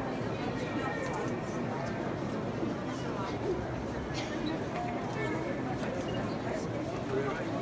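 A crowd of men and women murmurs and chatters nearby in a large echoing hall.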